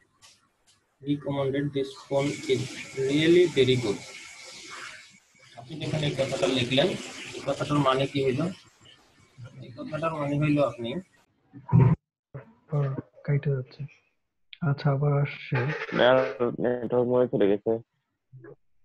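A man speaks over an online call, close to the microphone.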